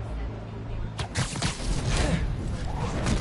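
A rushing whoosh sweeps past.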